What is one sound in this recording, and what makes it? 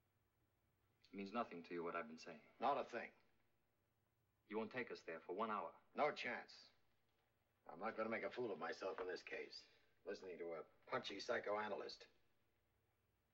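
An older man speaks firmly and close by, in short bursts.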